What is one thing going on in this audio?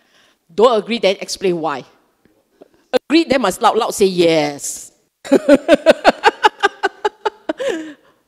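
A middle-aged woman speaks animatedly into a microphone, heard through a loudspeaker.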